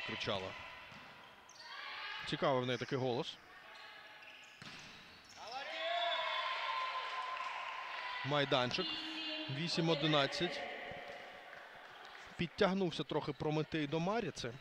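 Young women players shout and call out in a large echoing hall.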